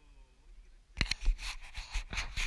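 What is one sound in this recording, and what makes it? Gear knocks and bumps against a plastic kayak.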